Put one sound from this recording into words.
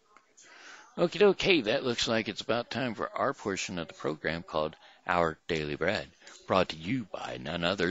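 A middle-aged man speaks with animation into a headset microphone, close up.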